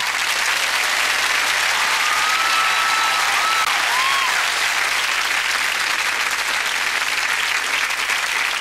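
A large crowd cheers loudly in an echoing hall.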